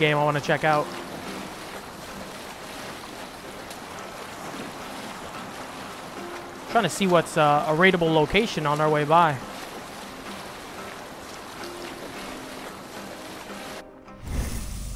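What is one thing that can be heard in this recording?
Water splashes and rushes along the hull of a sailing boat.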